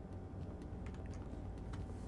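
Footsteps run on a hard floor.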